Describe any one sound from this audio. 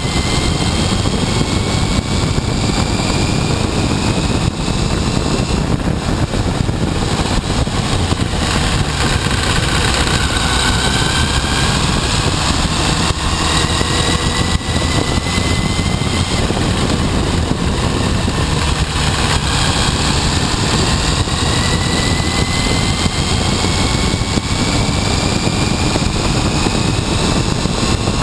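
Wind buffets loudly against a moving motorcycle.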